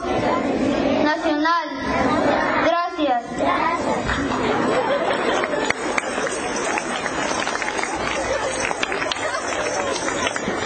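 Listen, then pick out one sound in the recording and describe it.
A crowd chatters and cheers loudly outdoors.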